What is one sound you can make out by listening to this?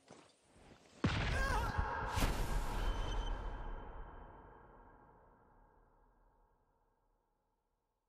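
A heavy crash rings out and slowly fades.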